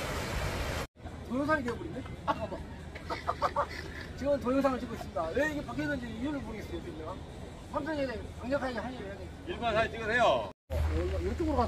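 Several men talk and laugh together nearby.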